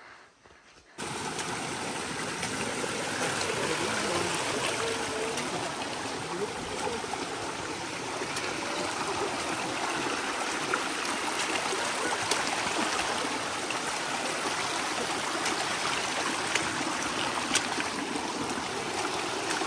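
A shallow stream rushes and splashes over rocks.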